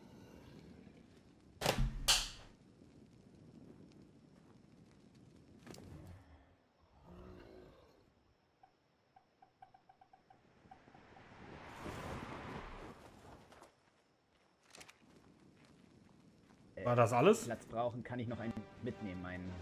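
A torch fire crackles softly close by.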